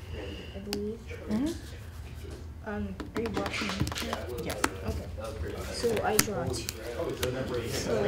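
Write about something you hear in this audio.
Playing cards slap and slide on a table mat.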